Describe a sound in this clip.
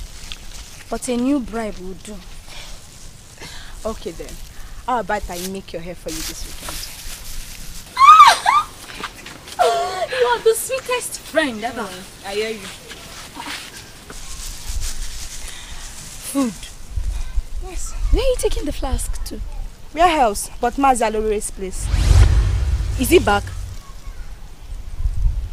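A woman speaks loudly and sharply close by.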